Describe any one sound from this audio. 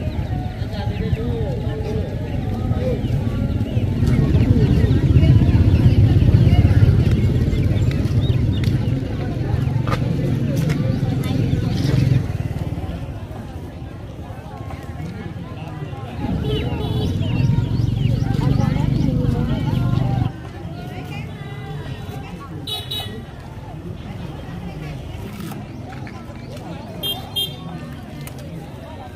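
Women chatter nearby outdoors.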